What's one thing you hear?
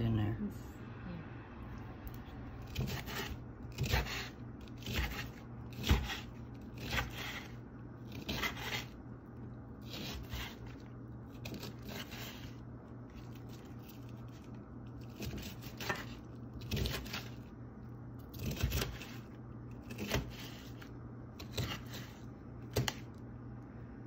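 A knife chops through onion on a plate with regular knocks.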